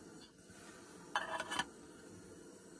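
A metal lid clatters onto a pot.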